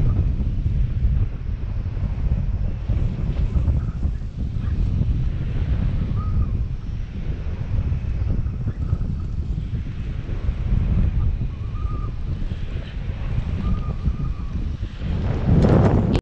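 Strong wind rushes and buffets steadily past a microphone.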